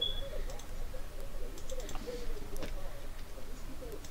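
Keypad buttons click as a number is entered.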